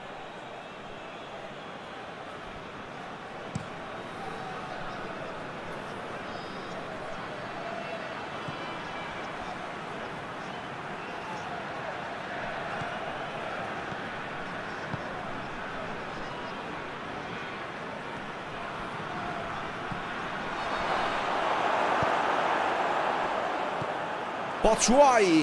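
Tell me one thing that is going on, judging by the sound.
A large crowd murmurs steadily, then swells into a loud roar.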